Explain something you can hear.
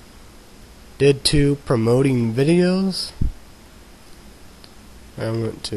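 A young man speaks casually and close to a microphone.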